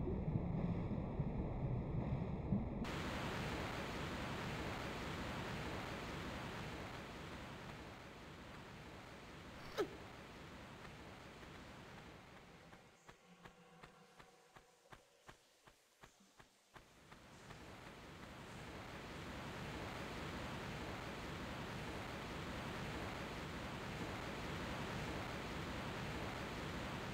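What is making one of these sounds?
Rushing water roars steadily nearby.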